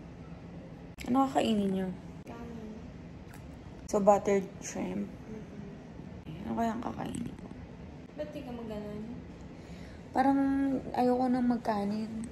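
A young woman speaks casually and close up, in short phrases.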